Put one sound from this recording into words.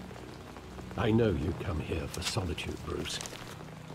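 A young man speaks in a low, calm voice, close by.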